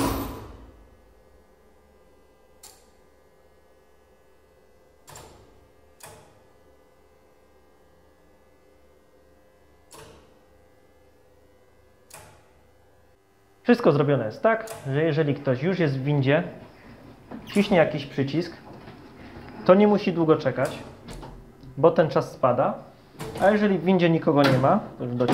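Elevator doors slide open and shut.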